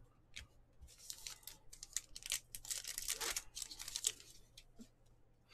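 Trading cards rustle and slap as they are shuffled by hand.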